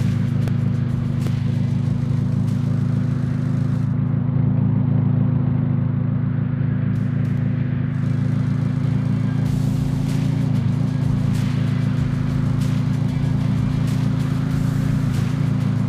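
A monster truck engine drones steadily.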